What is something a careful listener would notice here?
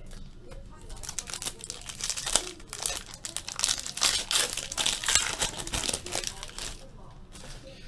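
A foil card pack crinkles and tears as it is opened.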